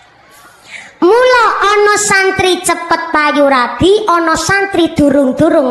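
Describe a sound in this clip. A young woman sings loudly through a microphone.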